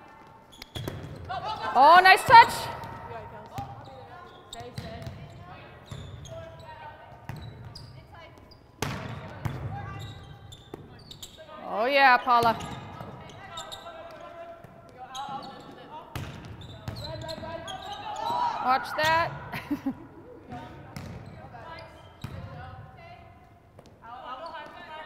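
A volleyball is struck with sharp slaps in a large echoing gym.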